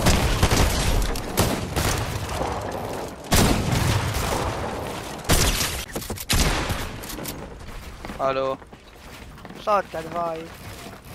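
Building pieces thud into place in a video game.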